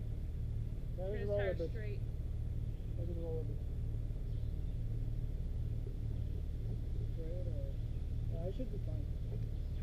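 A woman talks nearby outdoors.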